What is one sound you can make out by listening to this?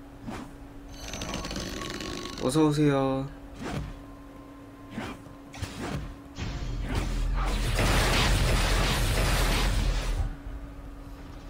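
An icy magic blast crackles and hisses.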